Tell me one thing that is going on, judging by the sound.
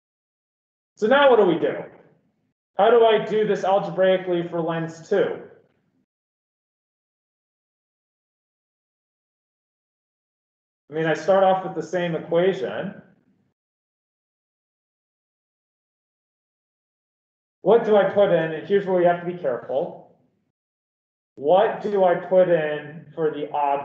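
A man speaks calmly into a close microphone, explaining in short bursts with pauses.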